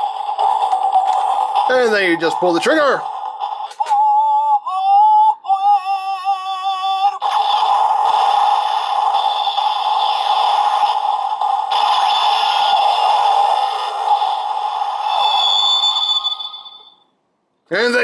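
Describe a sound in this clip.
A toy plays loud electronic music and sound effects.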